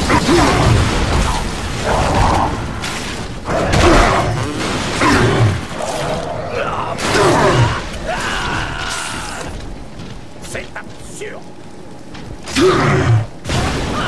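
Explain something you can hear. A creature growls and screams.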